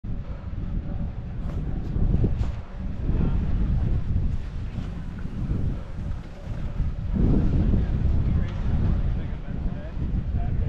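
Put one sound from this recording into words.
Skis scrape and hiss over packed snow.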